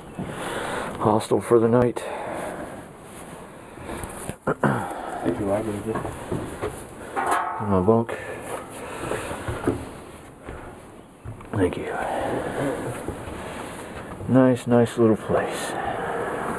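A man talks close by, with pauses.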